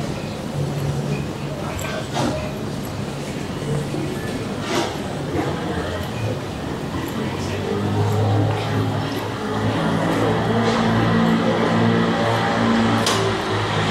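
Footsteps tap on pavement nearby.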